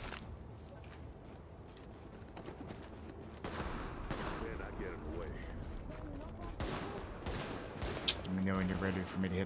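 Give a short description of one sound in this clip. Footsteps crunch through snow at a run.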